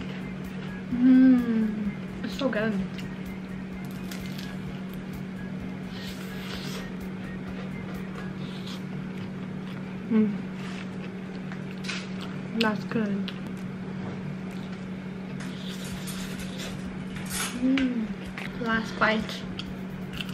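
A young woman hums with pleasure while eating.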